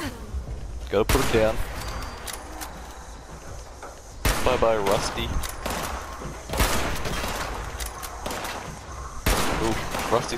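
A rifle fires sharp, loud shots several times.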